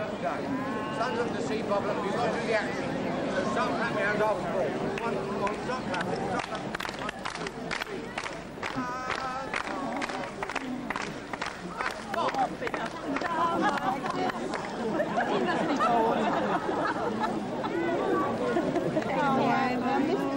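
A large outdoor crowd chatters and murmurs.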